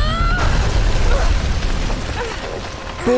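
Rocks tumble and crash down with a deep rumble.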